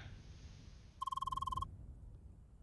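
Rapid electronic blips chirp as dialogue text types out.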